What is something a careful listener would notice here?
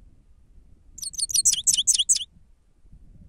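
A bird chirps in a quick, shrill burst close by.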